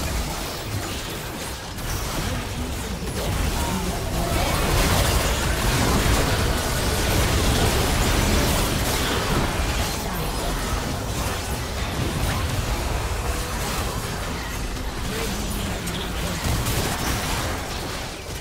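Game spells whoosh, blast and crackle during a fast battle.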